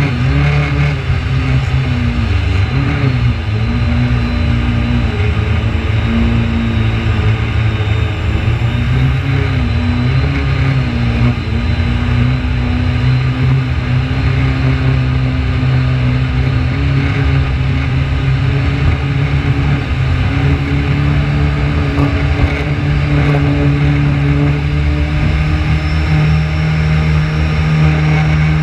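Water splashes and slaps against a jet ski's hull.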